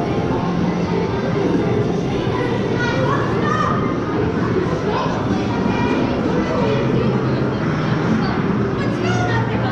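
A crowd of people chatters indistinctly in the background.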